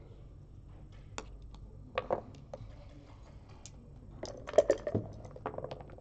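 Game pieces click against a board as they are moved.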